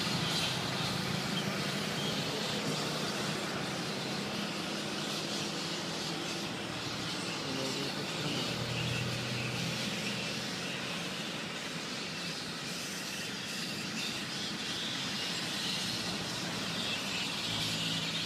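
A large colony of fruit bats screeches and chatters without pause.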